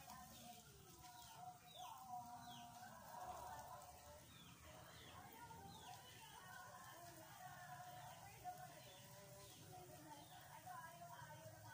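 Water sprays from a hose and splashes against a wall.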